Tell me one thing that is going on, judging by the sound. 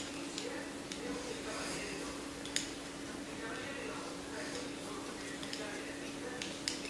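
Knitting needles click and tap softly against each other.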